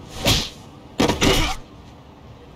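A man thuds onto the ground.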